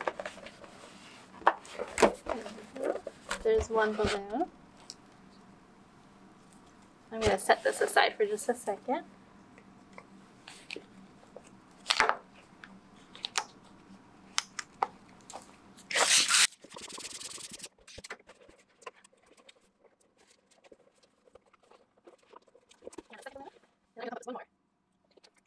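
Stretched balloon rubber squeaks under fingers as a balloon is tied.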